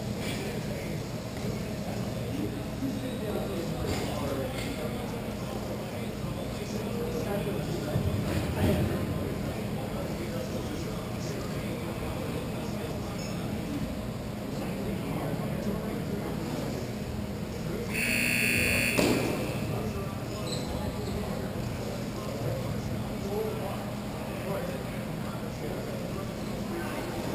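Hockey sticks clack against the floor and a ball.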